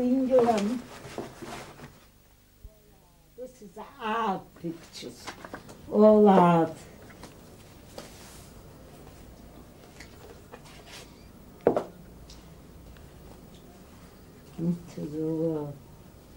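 An elderly woman talks calmly close by.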